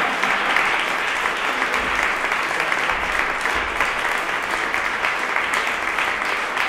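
An audience applauds steadily in an echoing hall.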